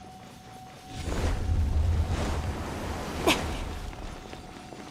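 A low magical whoosh rumbles briefly.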